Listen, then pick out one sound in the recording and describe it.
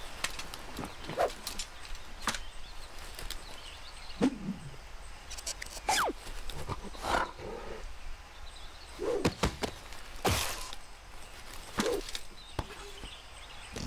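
A golf club swishes through the air.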